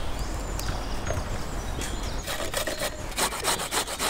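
A carrot is grated on a box grater.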